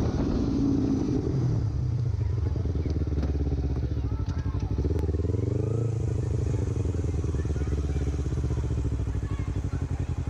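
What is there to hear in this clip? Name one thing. A sport motorcycle engine slows down with a shift in pitch.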